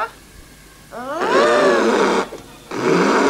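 An elephant trumpets loudly.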